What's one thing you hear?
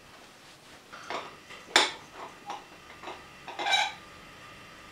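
A metal pan clinks and rattles.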